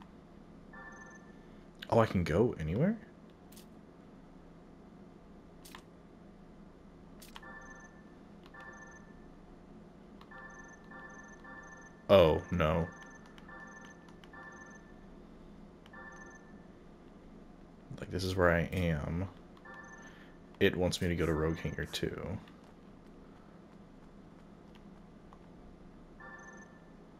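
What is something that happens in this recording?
Short electronic menu beeps chime one after another.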